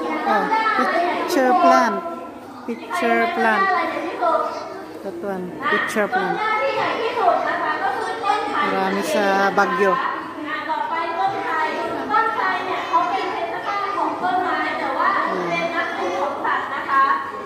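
Children talk and chatter close by in an indoor space.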